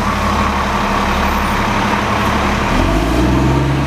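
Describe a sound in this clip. A bus engine idles with a low rumble close by.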